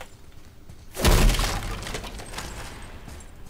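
A heavy chest bursts open with a deep rushing whoosh.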